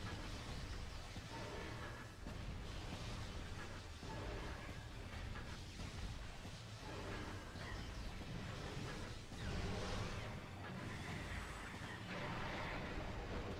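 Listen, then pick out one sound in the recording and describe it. Video game blasters fire and explode amid rumbling sound effects.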